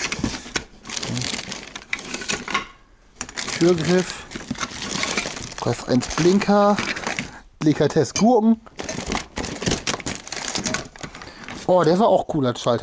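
Hard plastic and metal objects clatter and rattle as they are rummaged through in a box.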